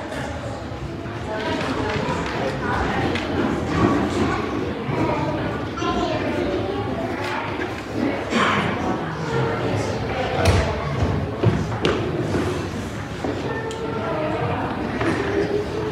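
A man speaks calmly into a microphone in a large echoing room.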